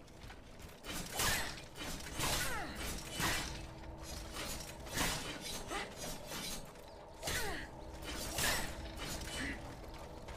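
Weapons swing and clash in rapid fighting.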